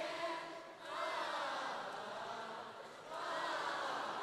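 A large audience laughs and cheers.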